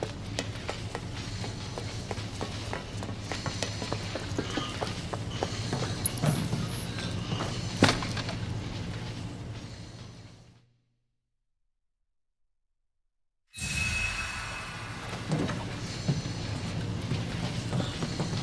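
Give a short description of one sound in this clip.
Footsteps run quickly.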